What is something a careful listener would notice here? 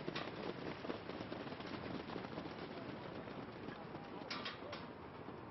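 Horses' hooves thud on a dirt track as a harness race passes.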